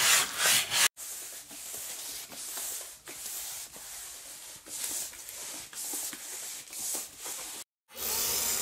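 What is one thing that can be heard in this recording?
A paintbrush sweeps softly across a wooden surface.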